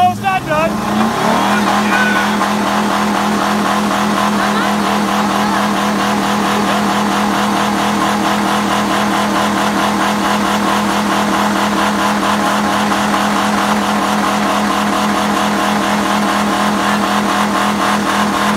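A car engine idles steadily close by.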